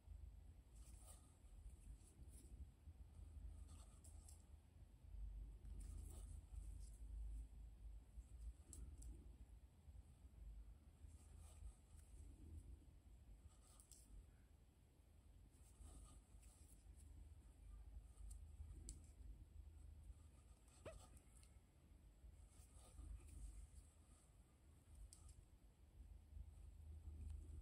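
Thread rustles and pulls softly through fabric close by.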